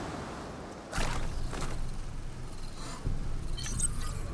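Waves wash onto a shore.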